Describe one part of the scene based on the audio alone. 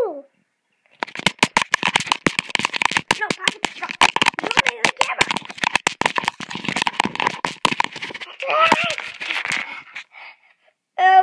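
Fingers rub and knock against a microphone in a fast, rough rustle.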